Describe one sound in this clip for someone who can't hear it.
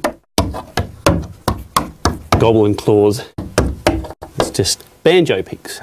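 Hands slap and rub on wooden boards.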